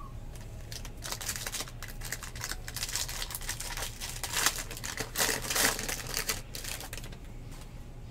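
A plastic wrapper crinkles and tears as hands rip a pack open.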